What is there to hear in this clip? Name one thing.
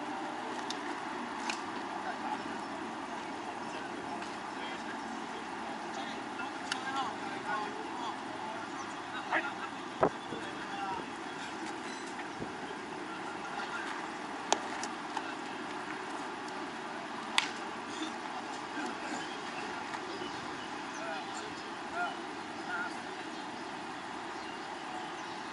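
Men call out to each other across an open ball field.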